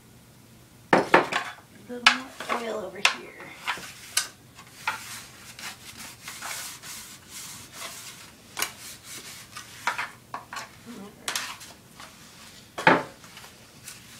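A metal baking pan knocks against a counter.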